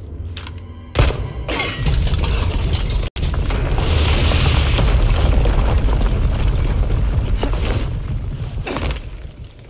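Stone crumbles and rumbles heavily.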